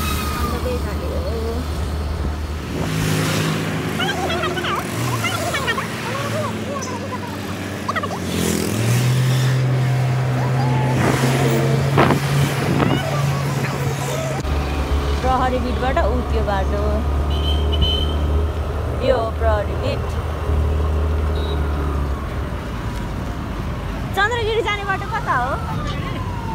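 A motorcycle engine hums steadily up close as it rides along a street.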